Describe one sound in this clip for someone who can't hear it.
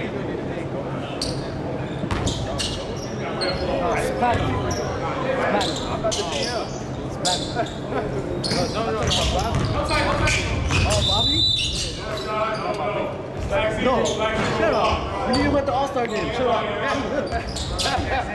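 Young players shout to each other in a large echoing gym.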